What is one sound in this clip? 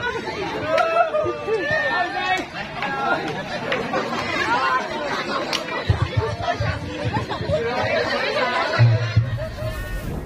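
A crowd of men and women chatter and call out loudly outdoors.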